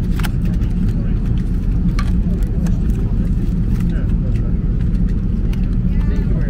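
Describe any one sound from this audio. A steady low drone of an aircraft cabin hums throughout.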